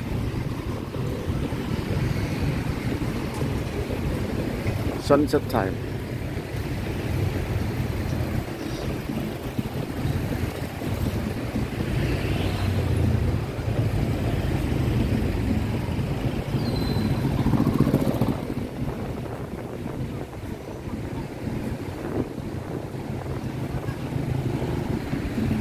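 Motorbike engines buzz by close.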